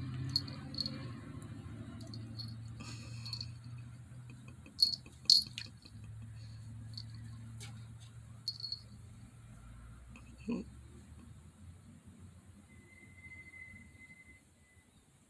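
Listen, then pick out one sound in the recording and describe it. A small dog growls playfully up close.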